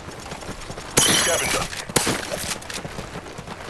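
Gunshots crack loudly in a short burst.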